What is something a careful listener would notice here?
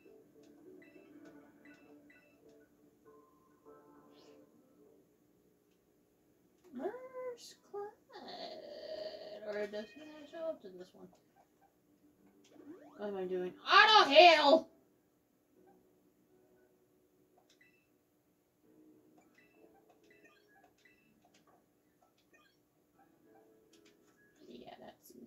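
Soft video game music plays from a television speaker.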